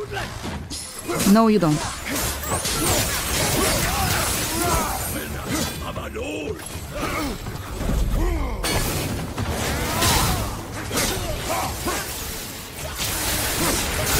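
Creatures screech and growl.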